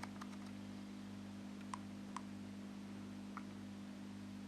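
Buttons on a handheld game device click softly under a thumb.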